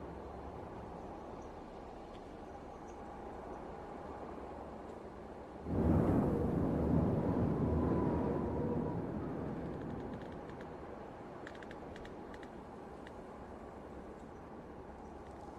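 A tank engine rumbles steadily as the tank drives along.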